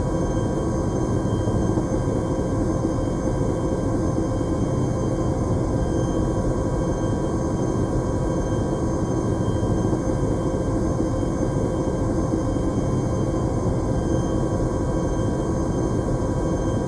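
Aircraft engines drone with a steady, loud, low roar inside a cabin.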